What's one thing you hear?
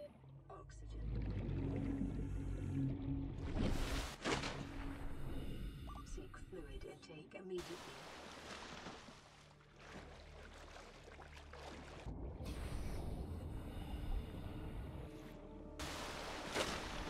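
Water splashes and churns as a swimmer breaks the surface.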